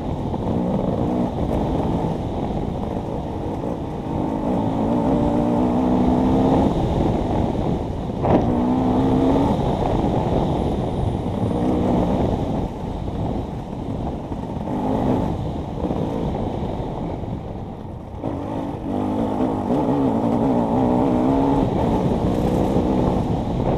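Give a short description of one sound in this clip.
A motorcycle engine revs hard and drops back.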